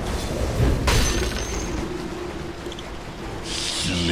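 Magic spells whoosh and crackle as game characters fight.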